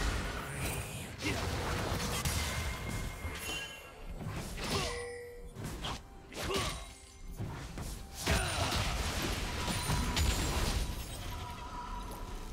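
Video game spell effects whoosh and crackle in a fight.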